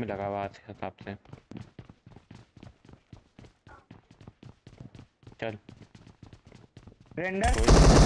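Footsteps thud quickly.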